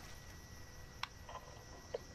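A button on an intercom clicks as it is pressed.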